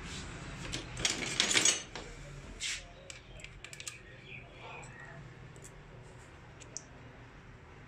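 Small metal parts clink and scrape against each other close by.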